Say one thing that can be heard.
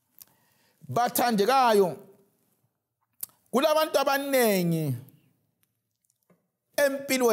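A man speaks with emphasis into a microphone, in short bursts with pauses.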